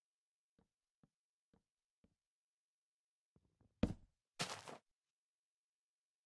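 Leaves rustle and break apart.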